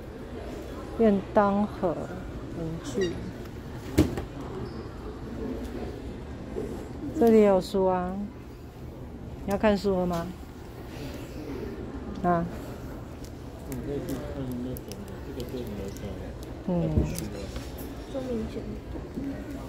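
A young woman talks casually close by.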